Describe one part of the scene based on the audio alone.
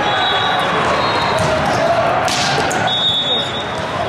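A volleyball is struck hard by a hand.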